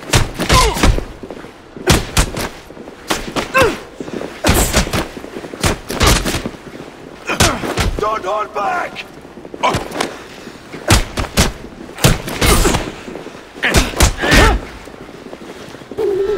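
Punches land with heavy thuds in a fistfight.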